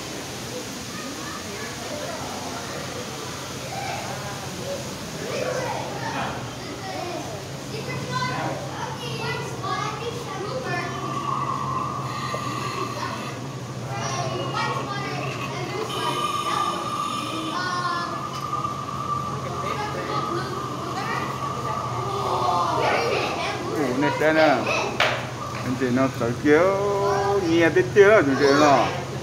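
People chatter softly in the background.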